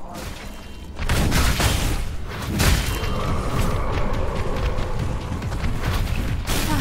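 A blade swishes and clangs in quick slashes.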